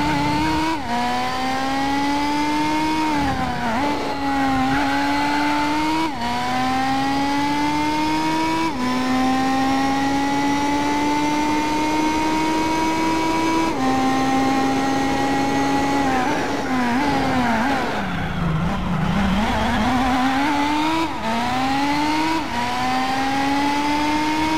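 A racing car engine roars steadily, rising in pitch through each gear and dropping at each shift.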